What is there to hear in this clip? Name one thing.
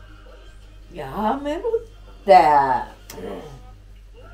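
A woman groans and cries out.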